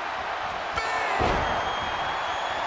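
A heavy body slams onto a wrestling mat with a deep thud.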